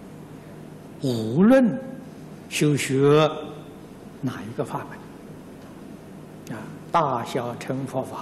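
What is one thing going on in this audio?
An elderly man speaks calmly and slowly into a microphone, with pauses between phrases.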